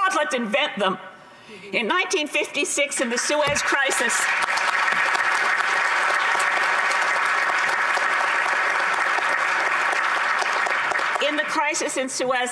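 An elderly woman speaks with animation into a microphone.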